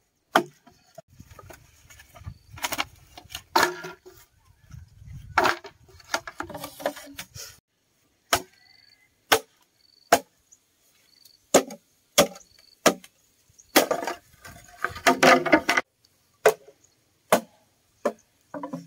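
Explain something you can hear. A machete chops into bamboo with sharp, hollow knocks.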